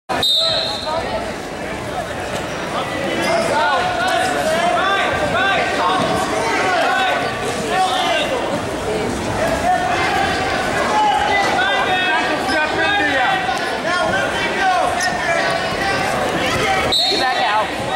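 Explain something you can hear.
Wrestling shoes squeak on a mat.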